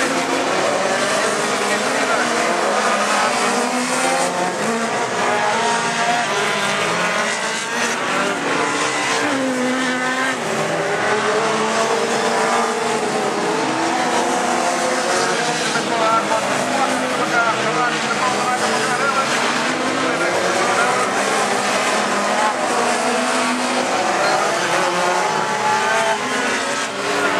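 Car engines roar and rev as cars race around a dirt track outdoors.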